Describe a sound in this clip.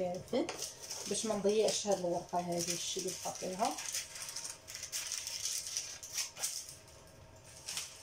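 Paper crinkles and rustles as it is handled.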